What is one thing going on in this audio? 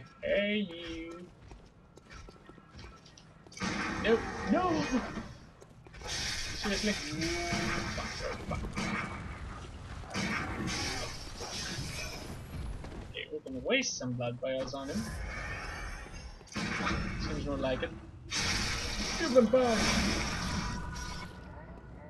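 Blades slash and clash in a game fight.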